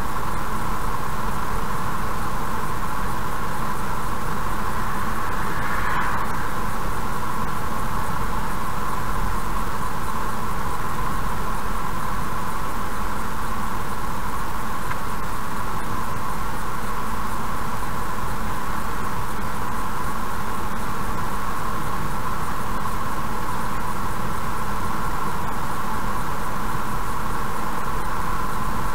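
Tyres roll on the road with a steady rumble.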